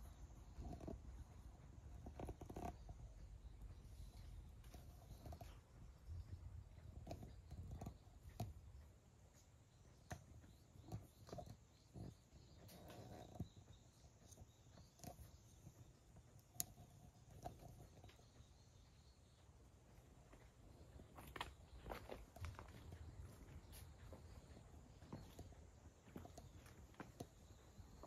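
A cat pads softly across stone paving.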